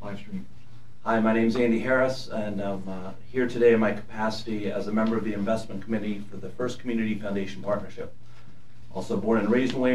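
A man speaks clearly through a microphone.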